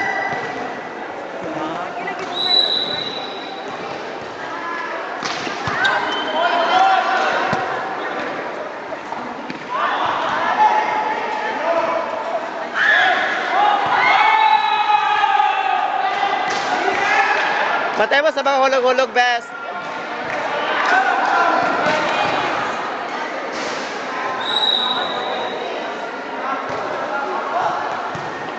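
A crowd of young people shouts and cheers in a large echoing hall.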